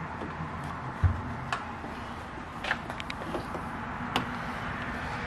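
Metal parts click and tap.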